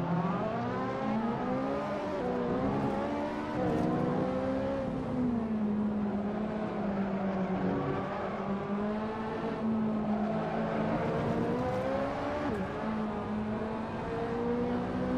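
A sports car engine roars and revs up and down through the gears.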